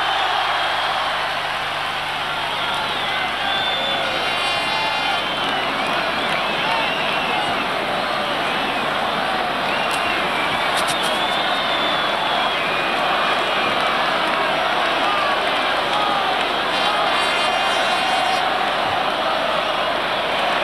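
A huge crowd cheers and roars loudly.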